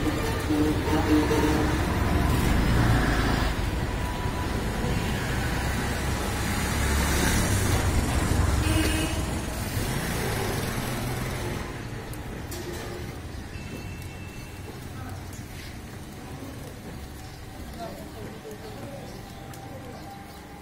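A knife slices through meat with soft scraping sounds.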